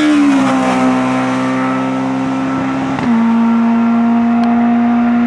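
A rally car engine roars loudly at high revs as the car races past.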